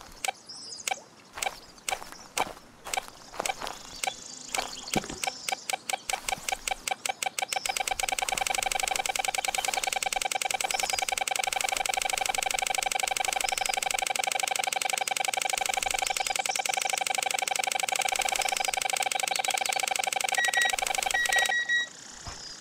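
A metal detector beeps, faster and faster, then gives a steady buzzing tone that cuts off.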